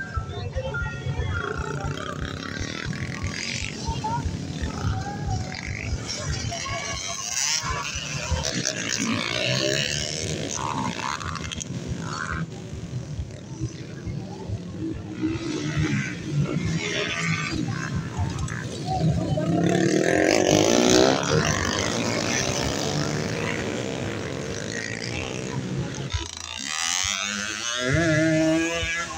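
Dirt bike engines rev and buzz loudly nearby.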